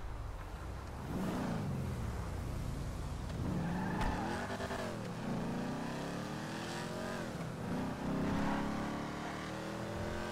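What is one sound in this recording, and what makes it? A car engine revs up and down as it drives away.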